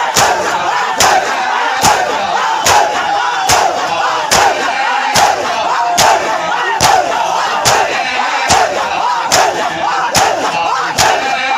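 A large crowd of men beat their chests in a steady, strong rhythm.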